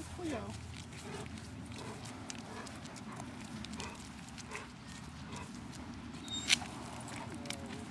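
A dog's paws patter on pavement.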